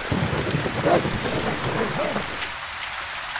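A wolf snarls and growls.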